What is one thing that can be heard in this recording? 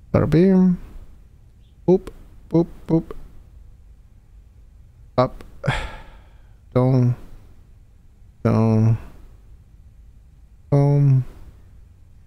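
A young man speaks in short, drawn-out bursts close to a microphone.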